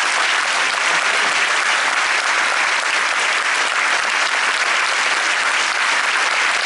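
A large audience applauds steadily.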